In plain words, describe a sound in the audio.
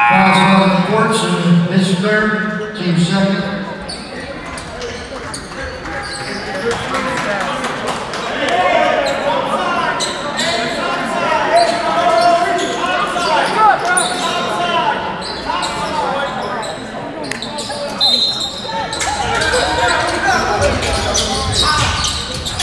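A crowd murmurs and cheers in an echoing gym.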